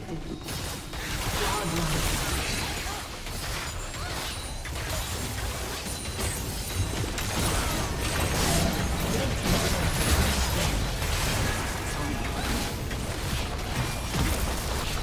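Magic spells blast and crackle in a busy fight.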